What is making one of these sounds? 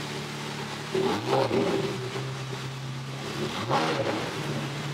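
A sports car engine revs in short bursts.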